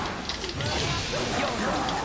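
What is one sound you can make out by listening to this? Lightning cracks with a loud crash.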